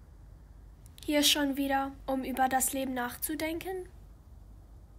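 A young woman speaks calmly nearby.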